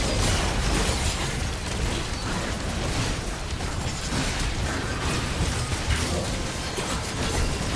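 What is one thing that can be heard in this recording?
Spell blasts and magic effects whoosh and crackle in a chaotic game battle.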